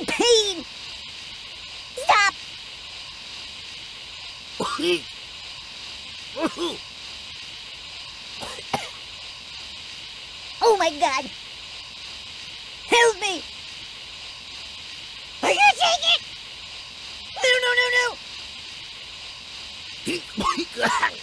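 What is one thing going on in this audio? Gas hisses steadily.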